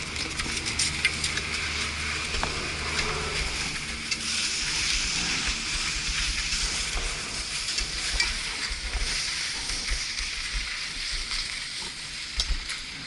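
Ski poles click on hard snow.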